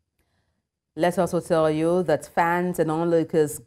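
A woman speaks calmly and clearly into a close microphone, like a news presenter.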